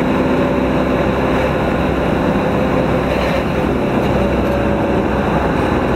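A truck passes by in the opposite direction with a brief whoosh.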